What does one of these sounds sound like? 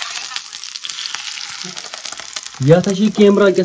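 Oil sizzles in a pan.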